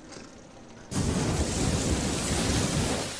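A flamethrower roars loudly.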